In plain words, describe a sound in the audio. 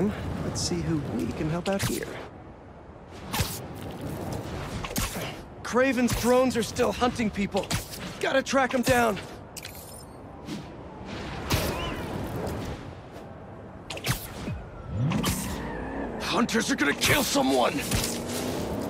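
Air rushes past in quick whooshes.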